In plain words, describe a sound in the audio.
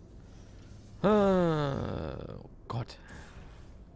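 A portal closes with a falling electronic whoosh.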